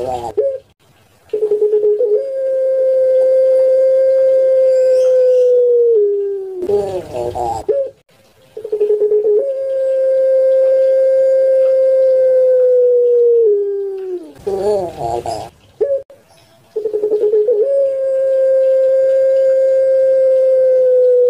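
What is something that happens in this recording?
A dove coos close by in long, steady, drawn-out calls that drop in pitch at the end.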